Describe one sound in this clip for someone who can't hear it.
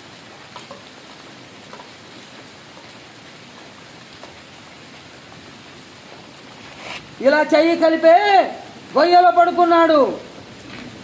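Wind blows hard through tree leaves outdoors.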